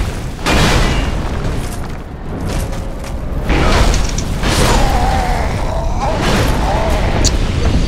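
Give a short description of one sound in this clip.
Swords clash and armour clanks in a fight.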